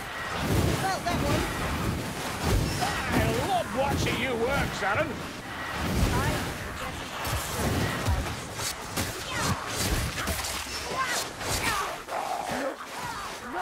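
Magic fire blasts crackle and whoosh.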